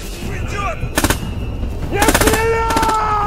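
A machine gun fires loud single shots.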